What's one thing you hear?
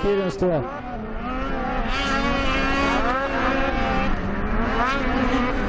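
Snowmobile engines whine and roar as they race past.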